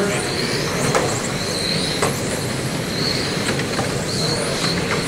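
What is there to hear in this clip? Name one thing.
Small electric motors whine as toy cars race past.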